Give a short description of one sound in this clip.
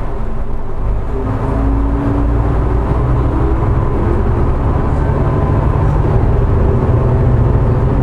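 A train's engine revs up and grows louder as the train pulls away.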